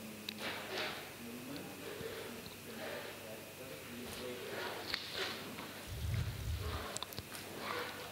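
A man laughs softly nearby.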